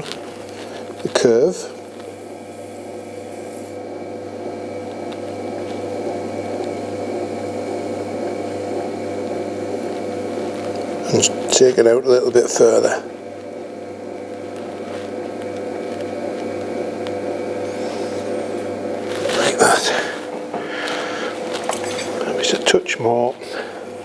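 An electric potter's wheel motor hums as it spins.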